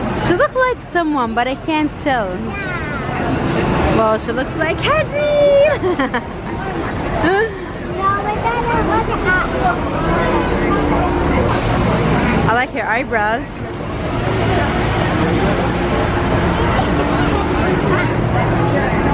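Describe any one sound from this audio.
Street traffic rumbles past.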